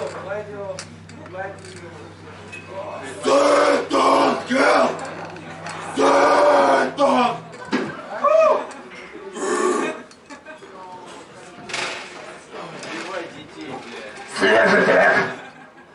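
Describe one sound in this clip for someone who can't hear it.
A man shouts loudly and hoarsely.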